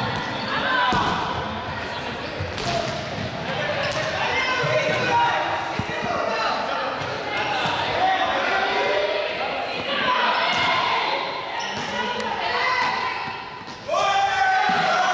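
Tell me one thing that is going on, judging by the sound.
Young people shout and chatter excitedly in a large echoing hall.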